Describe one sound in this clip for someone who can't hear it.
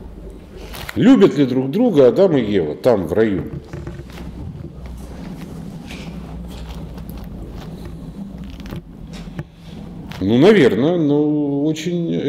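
An older man speaks in short bursts close by.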